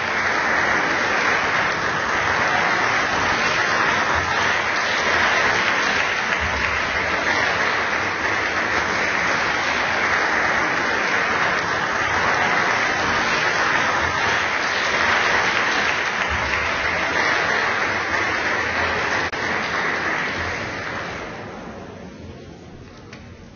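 An audience applauds steadily in a large hall, then the applause fades away.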